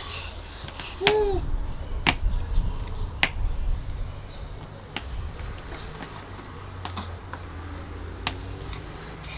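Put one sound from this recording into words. Plastic toy pins knock and clatter on a hard floor.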